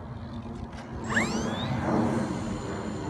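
A model glider swooshes past close by.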